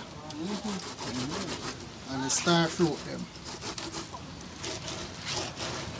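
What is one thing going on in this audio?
Someone grates a vegetable on a hand grater with a scraping sound.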